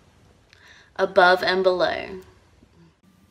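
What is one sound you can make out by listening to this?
A young woman speaks warmly and animatedly.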